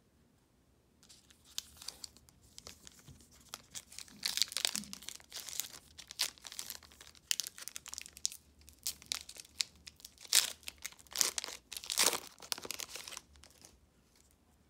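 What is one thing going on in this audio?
A foil wrapper crinkles and tears as hands open a pack.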